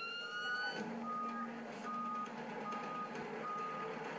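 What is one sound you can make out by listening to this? A truck's reversing alarm beeps at a steady pace.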